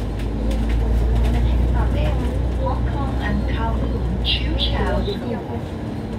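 A bus engine rumbles low and steadily, then quietens.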